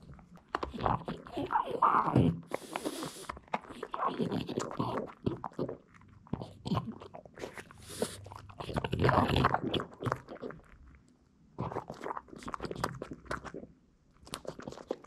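A dog chews and gnaws noisily close by.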